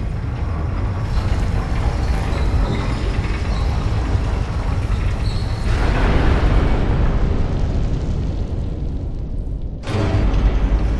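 A heavy lift rumbles and clanks as it moves.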